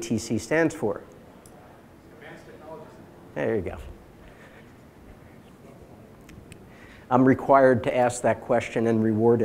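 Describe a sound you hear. A middle-aged man speaks calmly into a microphone in a large room, pausing between phrases.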